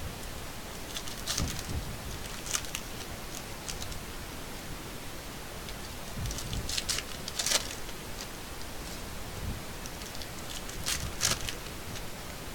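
Cards rustle and tap as they are handled.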